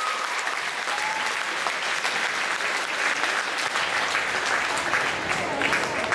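Dancers' feet stamp and shuffle on a wooden gym floor, in a large echoing hall.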